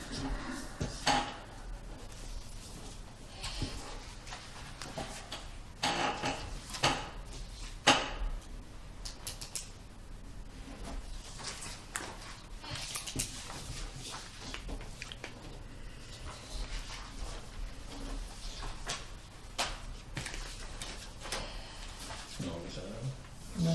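Papers rustle and shuffle close by.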